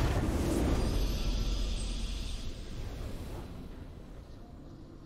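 A triumphant victory fanfare from a video game rings out and slowly fades away.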